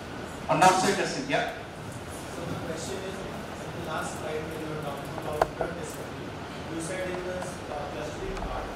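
A man speaks into a microphone in an echoing room.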